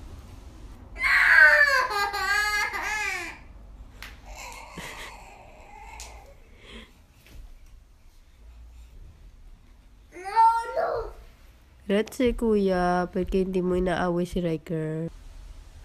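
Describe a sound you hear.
A young child whines and cries out loudly close by.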